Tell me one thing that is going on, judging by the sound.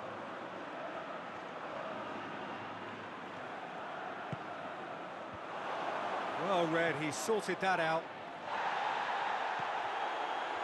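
A large stadium crowd roars steadily, swelling louder near the end.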